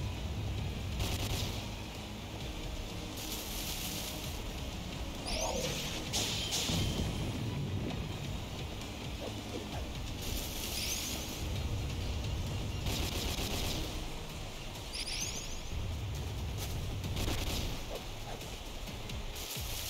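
Magic attacks whoosh and crackle in bursts.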